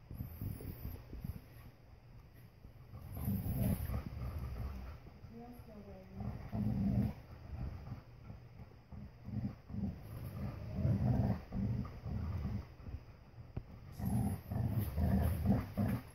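Dogs growl low and playfully in bursts.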